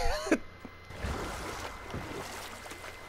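Water splashes and laps against a small rowing boat.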